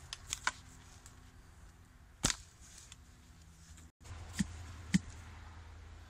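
A post hole digger thuds and scrapes into dry soil.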